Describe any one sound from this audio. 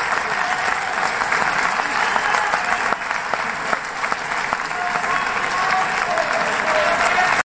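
A brass band of bugles plays loudly in a large echoing hall.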